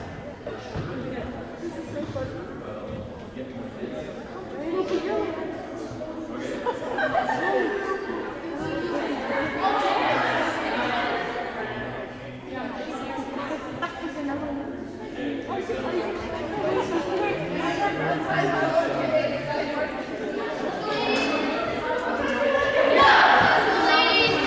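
Players' voices chatter and call out throughout a large echoing gym.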